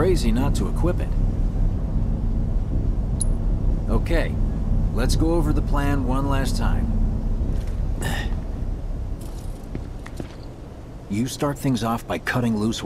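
A young man speaks calmly and firmly.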